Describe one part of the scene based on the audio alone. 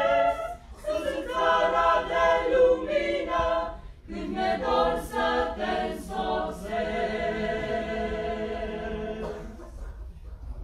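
A group of young women and men sing together in a reverberant hall.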